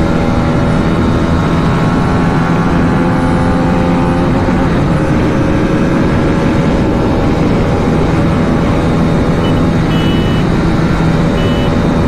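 A motorcycle engine roars steadily at high speed.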